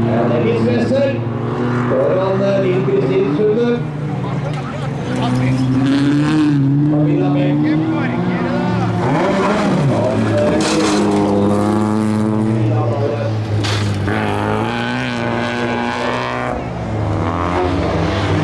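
A rally car engine roars and revs hard as the car races past.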